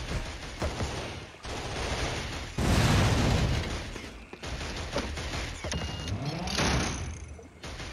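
Heavy metal machinery clanks and whirs.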